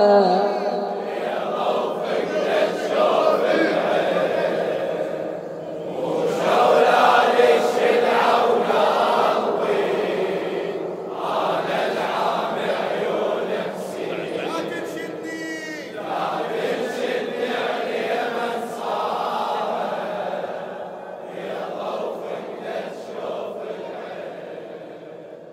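A man chants a mournful lament through a microphone in a large echoing hall.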